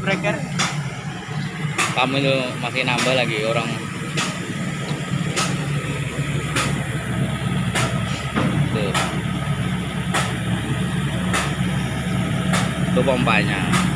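A diesel generator engine hums steadily close by.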